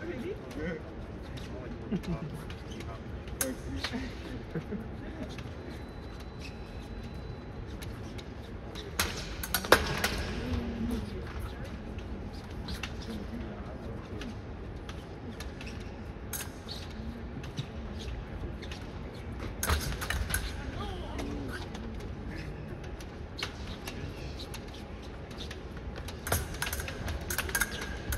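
Footsteps shuffle and stamp on a metal strip.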